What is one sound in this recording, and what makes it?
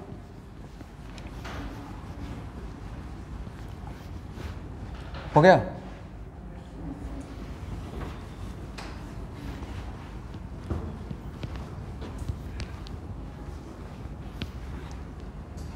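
A cloth rubs across a whiteboard as a man wipes it clean.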